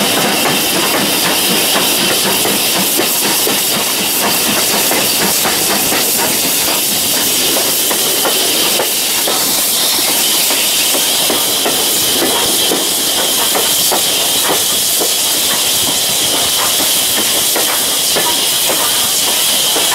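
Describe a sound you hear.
Wheels clatter rhythmically over the rail joints.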